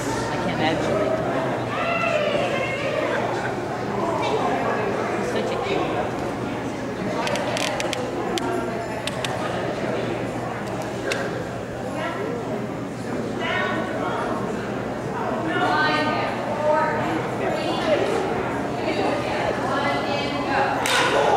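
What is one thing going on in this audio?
A woman calls out to a dog with animation in a large echoing hall.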